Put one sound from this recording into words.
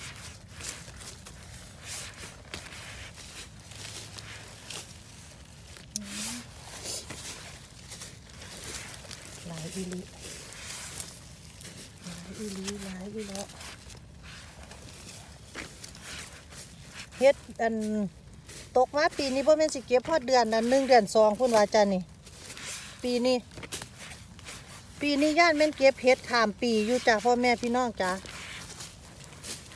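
A gloved hand rustles through dry pine needles and leaves.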